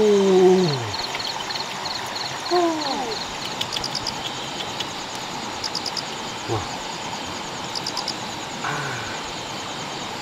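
A man speaks casually nearby.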